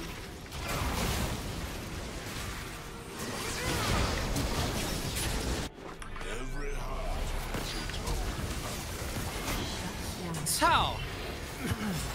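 Game battle effects clash and burst in quick succession.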